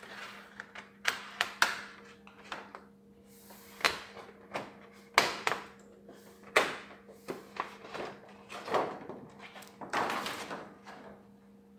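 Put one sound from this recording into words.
A plastic sheet crinkles and rustles as it is peeled away.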